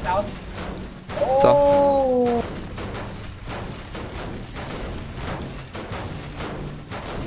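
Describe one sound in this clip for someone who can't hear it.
A pickaxe repeatedly strikes metal with sharp clangs.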